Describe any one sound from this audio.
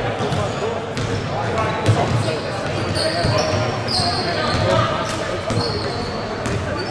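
A basketball bounces on a wooden court with hollow thumps.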